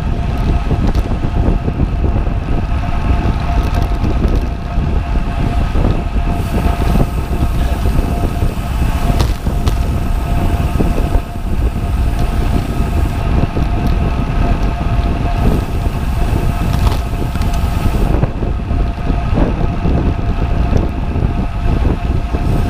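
Strong wind roars steadily past, as if outdoors at speed.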